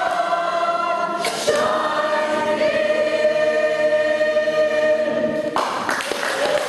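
An older woman sings a long held note loudly and close by.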